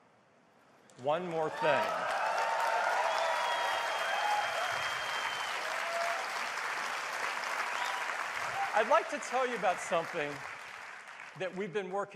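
A large audience cheers and applauds loudly.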